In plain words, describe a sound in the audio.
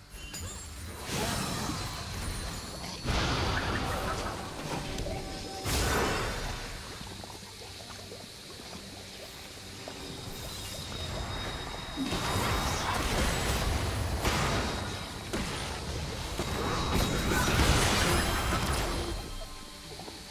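Spell effects crackle and burst in a fast battle.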